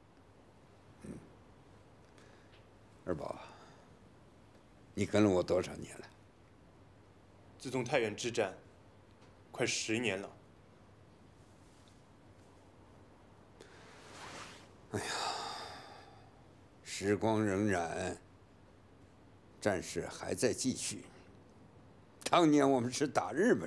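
An elderly man speaks slowly and calmly, close by.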